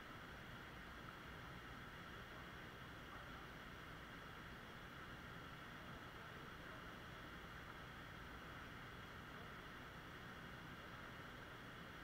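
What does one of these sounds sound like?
A waterfall splashes steadily into a pool nearby.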